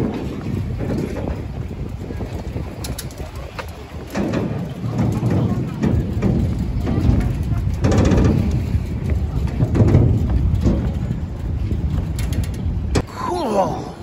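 A low rumble of wind and water fills the air outdoors.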